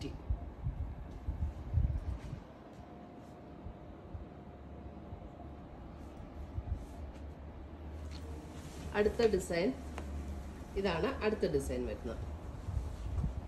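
Fabric rustles as it is unfolded and spread out.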